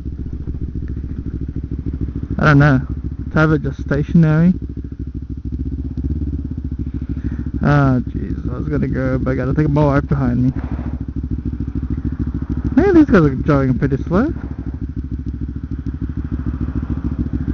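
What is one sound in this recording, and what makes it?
A motorcycle engine runs with a steady low rumble.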